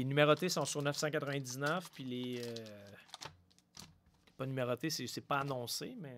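A cardboard box slides open.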